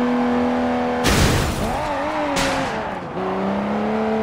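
A car crashes loudly into an object with a burst of smashing debris.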